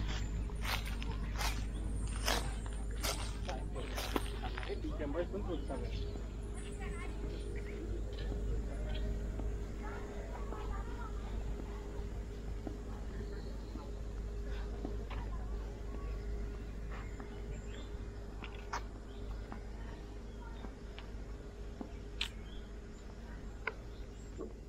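Footsteps scuff softly on a paved path.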